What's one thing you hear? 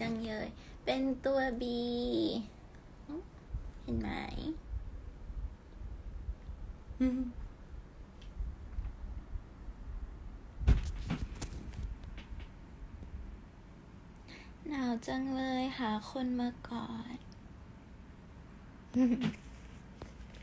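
A young woman speaks casually and close by, in short bursts with pauses.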